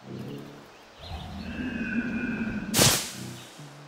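Air rushes past during a long fall.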